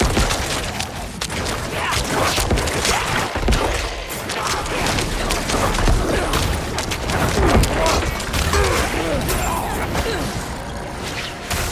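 Combat sound effects clash and crackle in quick bursts throughout.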